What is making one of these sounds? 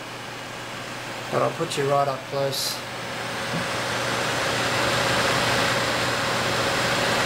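A computer's cooling fans hum steadily.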